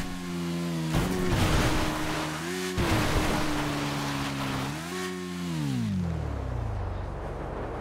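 A motorbike engine revs and then winds down.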